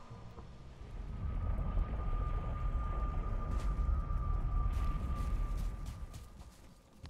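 A fire roars with a deep rumble.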